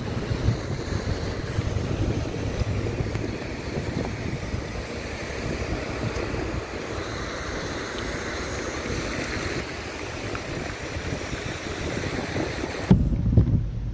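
Wind and road noise rush loudly past a moving car.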